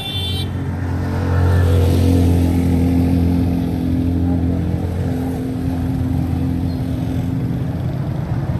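An auto-rickshaw engine putters close by.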